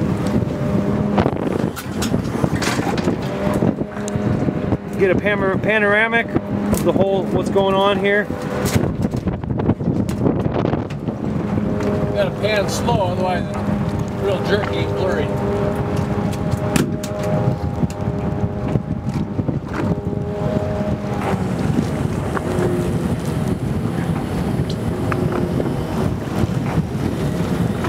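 Waves slap and splash against a boat's hull.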